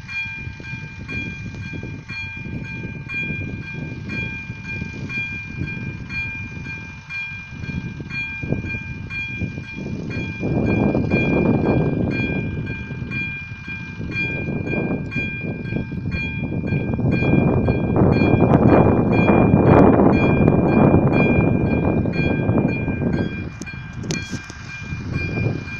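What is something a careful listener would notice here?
A level crossing bell rings in a steady, rapid rhythm.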